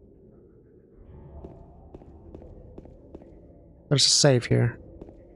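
Footsteps echo softly.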